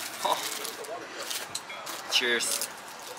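Food crunches as a young man bites and chews.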